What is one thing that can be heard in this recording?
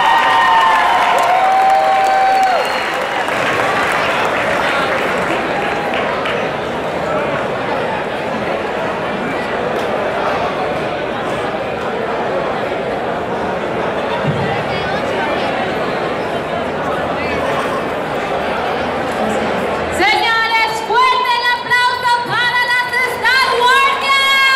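Loud music plays through loudspeakers in a large echoing hall.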